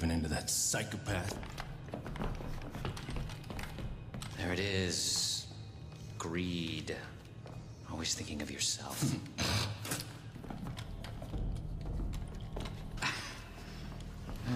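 Men speak tensely and threateningly, up close.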